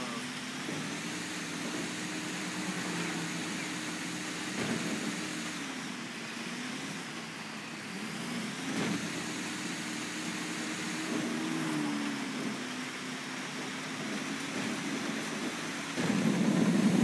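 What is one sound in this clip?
Tyres crunch over a gravel road.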